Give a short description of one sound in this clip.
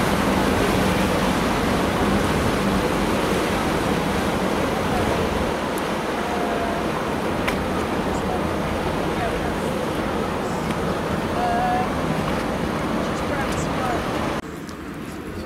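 Water rushes past a moving boat's hull.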